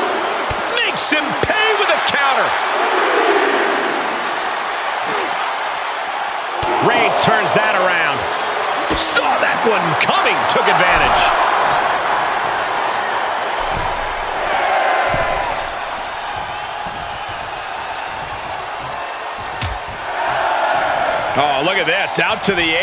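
Heavy blows and body slams thud.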